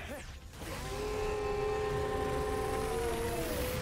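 Energy beams hum steadily in a game.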